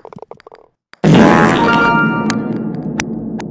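A bright celebratory jingle plays.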